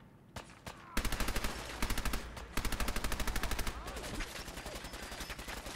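Rapid gunfire bursts out.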